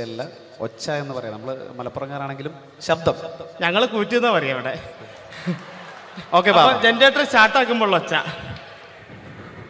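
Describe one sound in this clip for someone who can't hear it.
A young man sings into a microphone, heard through loudspeakers.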